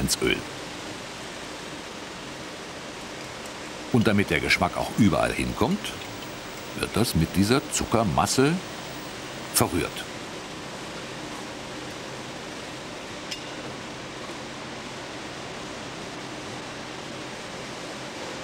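A mixer motor hums steadily.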